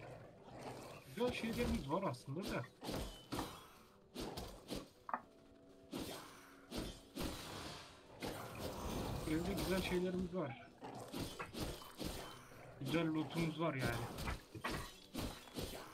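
Wolves snarl and growl during a fight.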